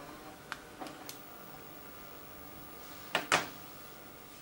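A plastic object clicks and clatters in a hand.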